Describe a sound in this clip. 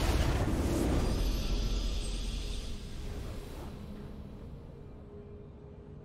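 A triumphant fanfare rings out and slowly fades.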